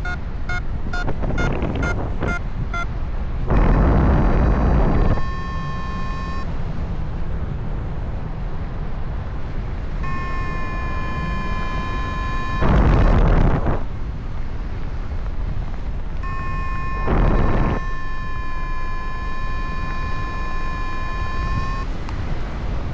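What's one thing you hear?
A flight instrument beeps and gives long steady tones.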